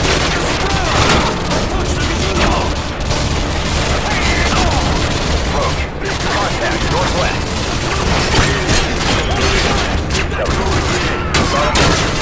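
Bullets smack and ping against a metal shield.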